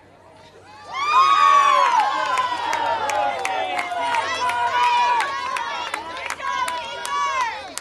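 Young men cheer and yell loudly and excitedly.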